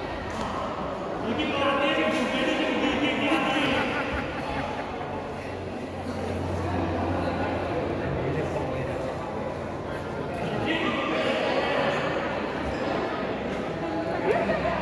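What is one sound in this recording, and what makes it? Shuttlecocks are struck by rackets with sharp pops.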